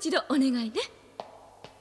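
A young woman speaks quietly.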